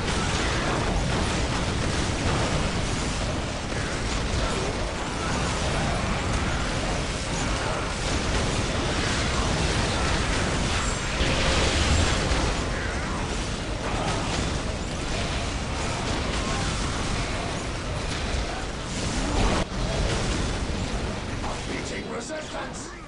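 Gunfire and explosions rattle and boom in a dense battle.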